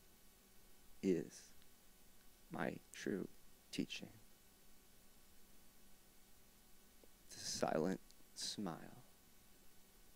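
A man plays short bursts of notes on a harmonica, close by.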